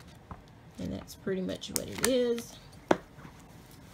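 Books shuffle and slide as a hand moves them about.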